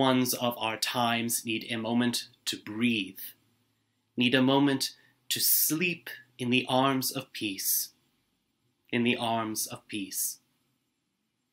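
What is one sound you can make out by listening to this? A man reads aloud calmly, close to a microphone.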